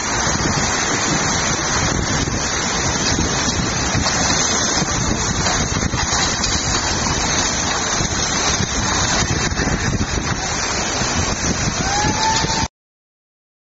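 Floodwater rushes and roars loudly outdoors.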